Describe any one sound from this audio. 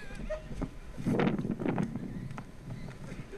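Men laugh close by.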